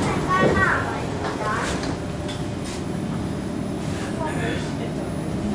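A subway train rumbles steadily along its tracks.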